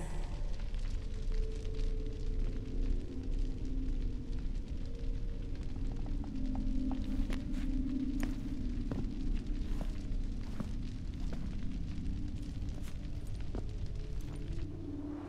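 A man speaks in a low, gravelly voice.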